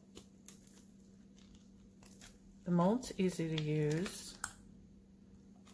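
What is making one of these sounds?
Hands bend a soft plastic mould, which crinkles and taps faintly.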